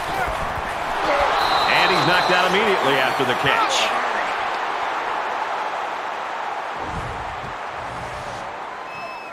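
A large stadium crowd cheers and roars.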